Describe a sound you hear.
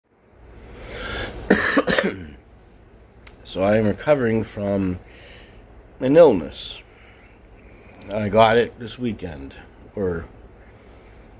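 A man speaks expressively and close up, with long drawn-out vowels.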